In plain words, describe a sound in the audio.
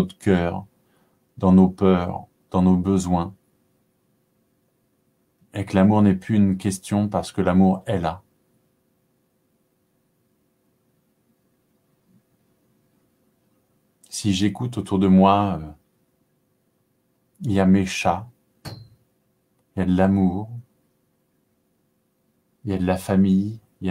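A man speaks calmly and close to a microphone, in short phrases with long pauses.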